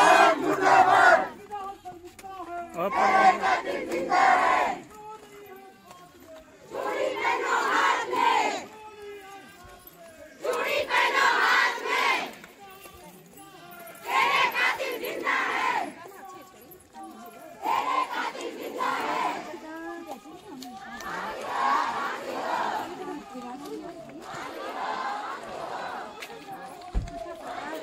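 A crowd of women and men chant slogans loudly in bursts, outdoors.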